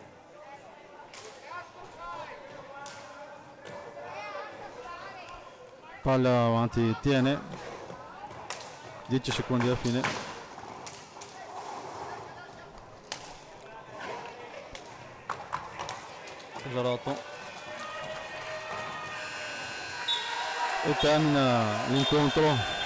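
Hockey sticks strike a ball with sharp clacks.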